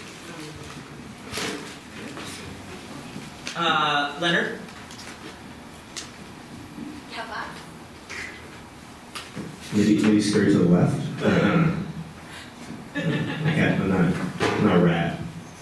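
A young man speaks in reply.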